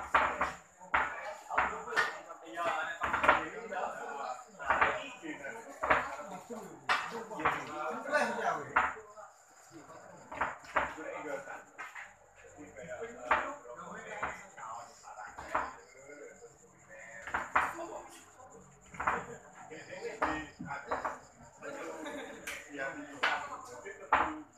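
Billiard balls clack together as they are racked.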